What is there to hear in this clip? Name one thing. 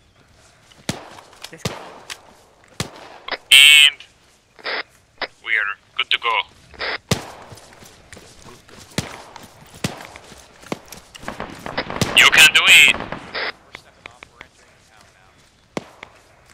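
Several people run with quick footsteps through dry grass.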